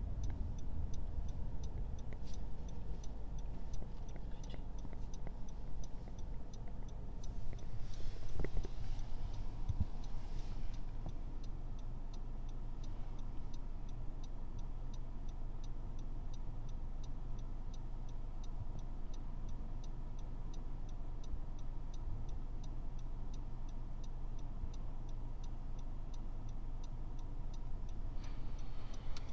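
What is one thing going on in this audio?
A car engine idles with a low, steady rumble inside the car.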